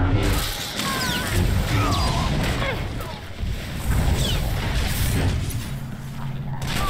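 Lightsaber blades clash with sharp crackling hits.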